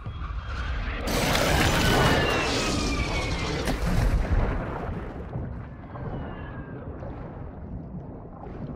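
A loud explosion booms and debris clatters down.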